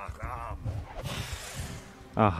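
A magic spell hisses as it strikes a giant spider.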